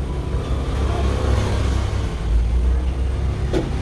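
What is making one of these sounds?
A hair dryer blows with a steady whirring roar.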